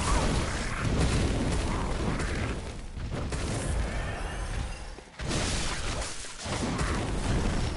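A blade slashes and strikes flesh with heavy thuds.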